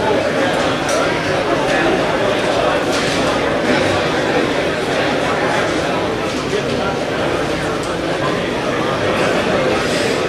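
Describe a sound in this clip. A choir of men and boys sings together in a reverberant room.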